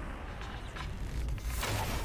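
A sword slashes and whooshes.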